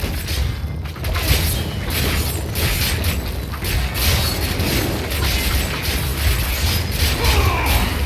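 Game spells burst and crackle.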